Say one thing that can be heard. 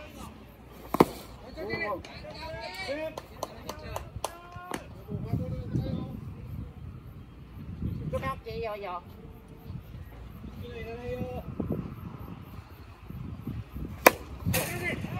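A ball smacks sharply into a catcher's mitt.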